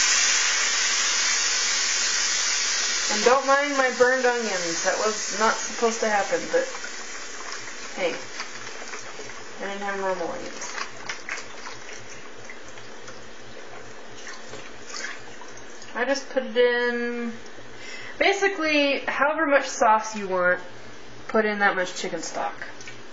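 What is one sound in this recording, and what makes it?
Liquid simmers and sizzles in a pan.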